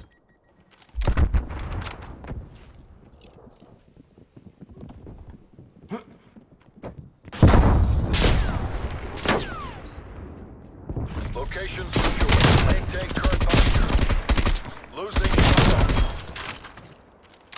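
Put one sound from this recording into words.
Gunfire rattles in loud, rapid bursts.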